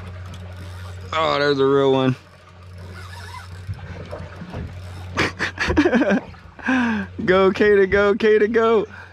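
A fishing reel's drag whines in bursts.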